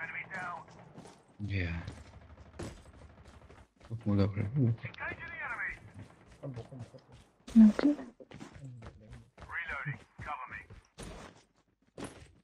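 Footsteps crunch quickly on dry dirt.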